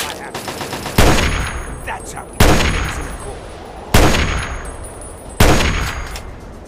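A rifle fires several loud, sharp shots.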